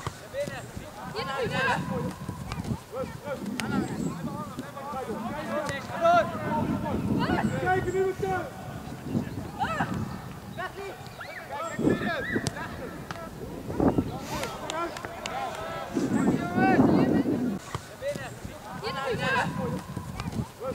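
A football is kicked hard with a dull thump outdoors.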